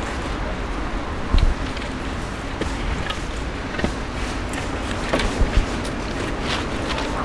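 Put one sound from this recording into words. A boy scrapes a stick against stone.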